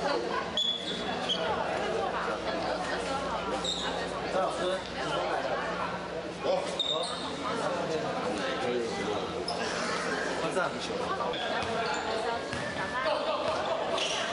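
Sneakers squeak sharply on a court floor now and then.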